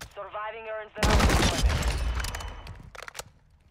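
Gunfire bursts loudly in a video game.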